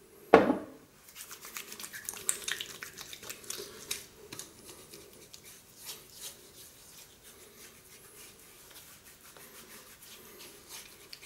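Hands rub and pat skin softly, close by.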